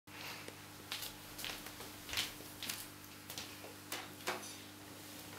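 Footsteps thud on a wooden floor close by.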